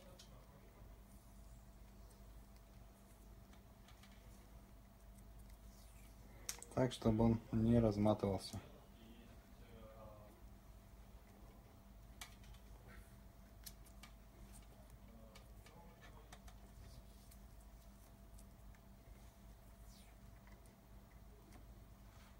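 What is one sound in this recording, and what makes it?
Plastic parts click and rustle under handling.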